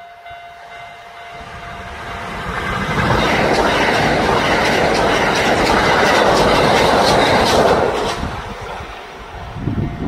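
A train approaches and rumbles loudly past close by.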